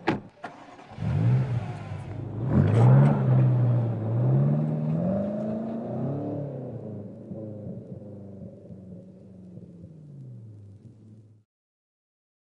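A powerful car engine revs hard and roars, then fades into the distance.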